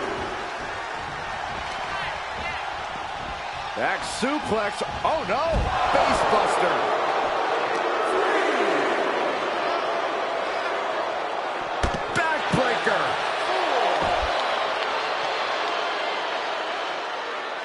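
A large crowd cheers and roars throughout in a big echoing arena.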